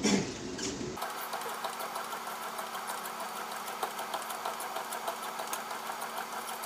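A treadmill motor hums steadily.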